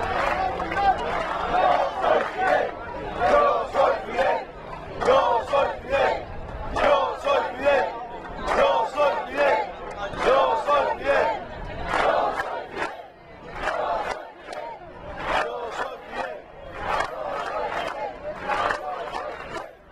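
A large crowd chants and cheers outdoors.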